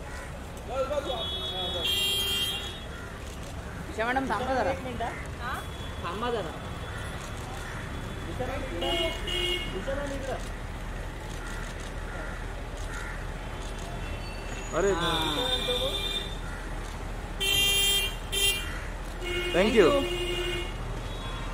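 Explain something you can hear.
A woman talks casually close by.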